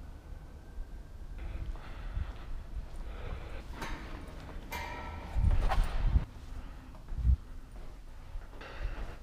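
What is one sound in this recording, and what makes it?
Bicycle tyres roll over smooth concrete in a large echoing space.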